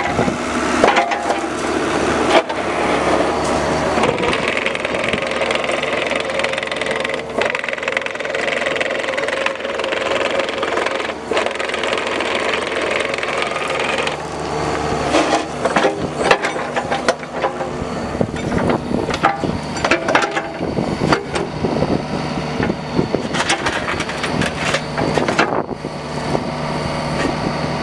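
A small diesel engine runs steadily nearby.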